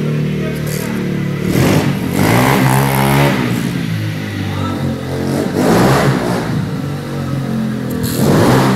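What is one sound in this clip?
A small motorbike engine buzzes loudly and revs up and down in an echoing hall.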